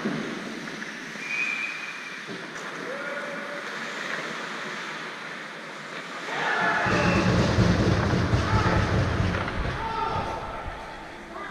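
Skates scrape and hiss across ice in a large echoing arena.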